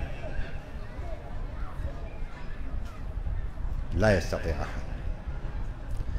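An elderly man speaks slowly and calmly into a microphone, in a room with some echo.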